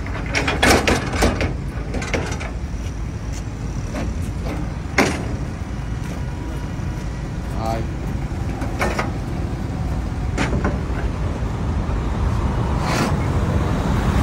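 Metal clanks and thuds on a truck's tail lift.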